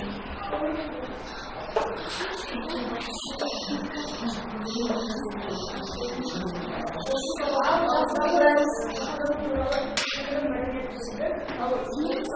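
Children murmur and chatter in the background.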